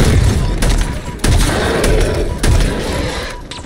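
Energy weapons fire and explosions boom loudly in a battle.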